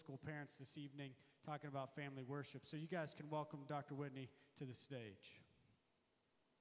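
A young man speaks calmly through a microphone in a large hall.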